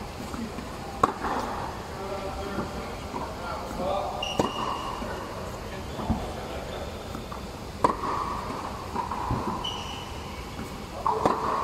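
A tennis racket strikes a ball with a sharp pop, echoing in a large hall.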